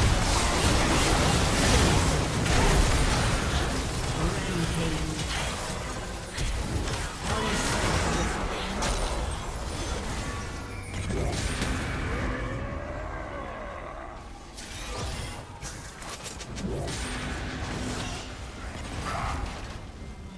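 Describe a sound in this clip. Spell effects and clashing hits from a battle game crackle and boom.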